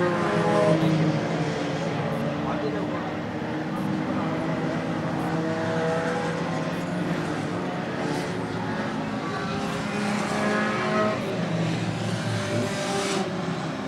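Race car engines roar steadily around a track outdoors.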